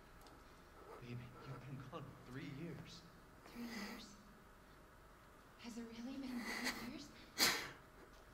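A man laughs softly close to a microphone.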